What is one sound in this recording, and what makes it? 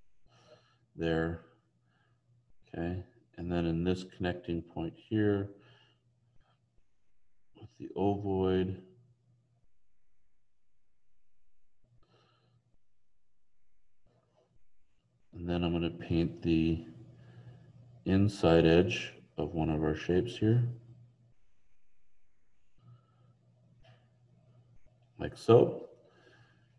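A man talks calmly in short phrases, heard through an online call.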